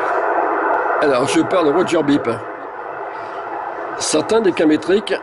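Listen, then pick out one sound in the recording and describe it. A voice talks through a CB radio loudspeaker.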